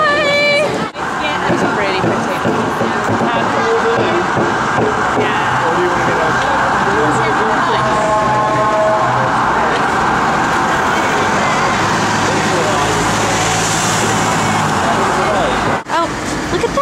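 A busy street crowd murmurs steadily outdoors.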